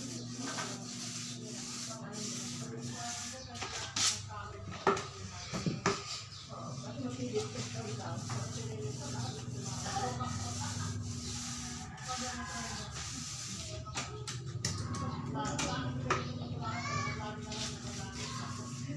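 A paint roller rolls softly across a wall.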